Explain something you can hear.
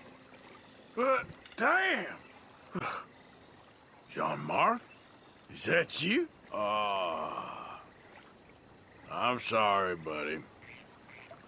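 A man speaks in a low, rueful voice.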